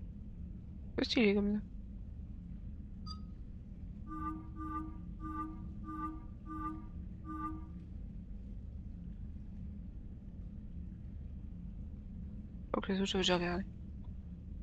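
A young woman speaks briefly and close to a microphone.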